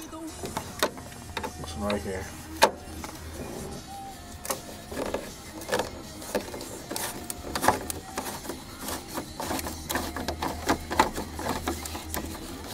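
A rod taps and scrapes against hard plastic.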